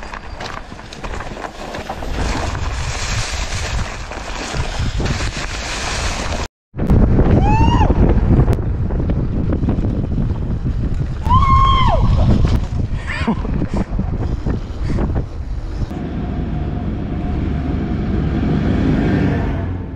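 Bicycle tyres roll and crunch over dry leaves and dirt.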